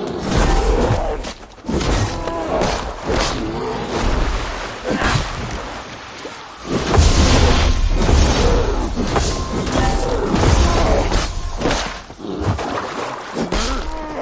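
Axe blows strike an animal.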